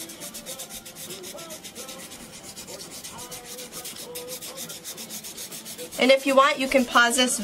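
A felt-tip marker scratches rapidly across paper in quick, even strokes.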